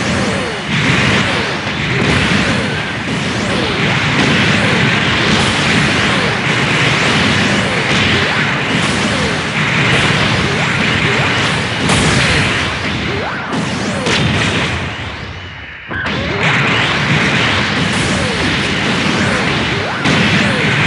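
A robot's thrusters roar steadily.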